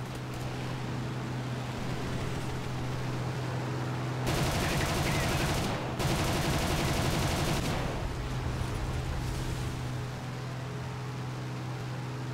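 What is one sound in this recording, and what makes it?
A propeller engine drones steadily.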